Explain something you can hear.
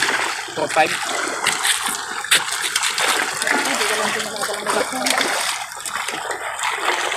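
Water laps and splashes against a stone edge.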